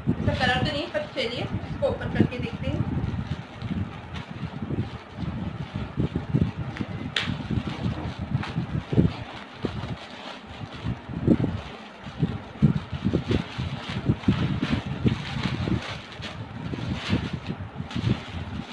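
Plastic packaging crinkles and rustles as it is handled and torn open.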